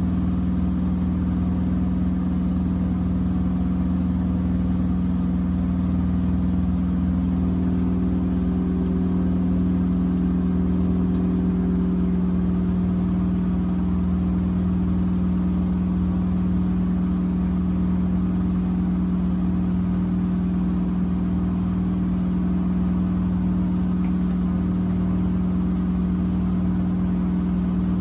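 Water sloshes inside a washing machine drum.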